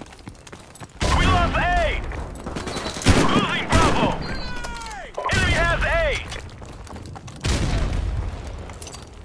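Shotguns fire loud booming blasts in bursts.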